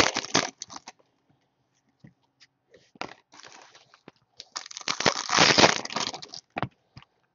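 Foil card packs crinkle and rustle in handling.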